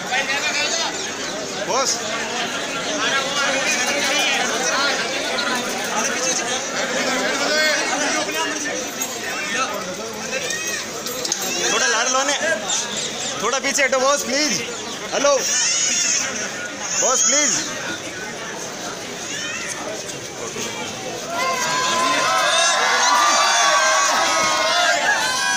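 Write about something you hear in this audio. A crowd of men talk and shout over each other close by, outdoors.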